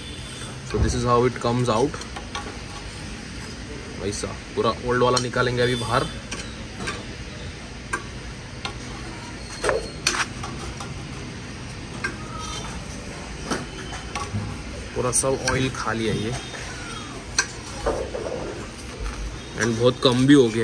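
A metal rod scrapes and knocks inside a motorcycle exhaust pipe.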